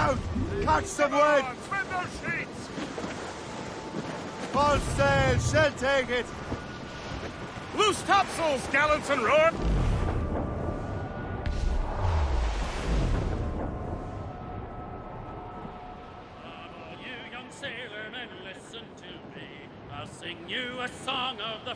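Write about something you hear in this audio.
Waves rush and splash against a sailing ship's hull.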